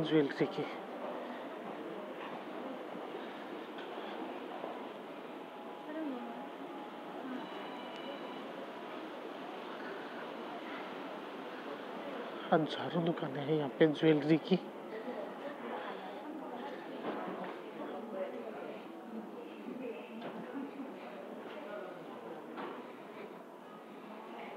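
A murmur of distant voices fills a large indoor hall.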